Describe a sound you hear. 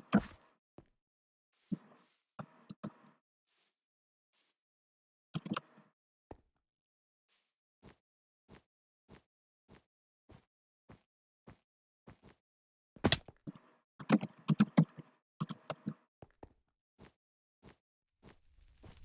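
Footsteps patter steadily on blocks.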